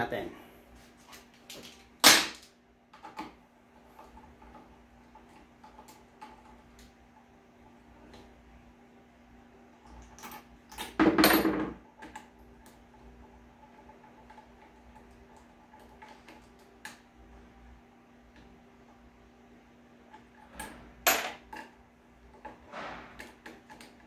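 Small metal parts click and clatter as they are handled.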